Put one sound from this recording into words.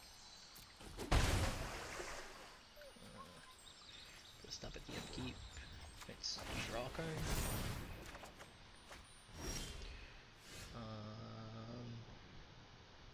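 Digital game effects whoosh and chime.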